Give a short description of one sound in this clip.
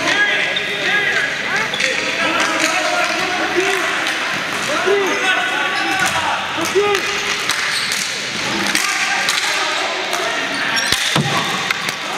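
Spectators and players shout and cheer in an echoing hall.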